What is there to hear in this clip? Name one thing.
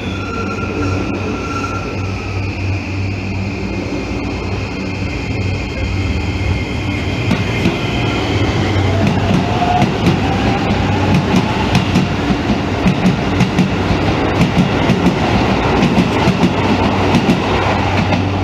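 An electric train hums steadily nearby.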